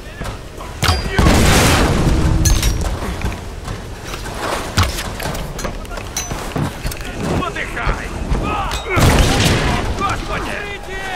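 Explosions boom and crackle with fire.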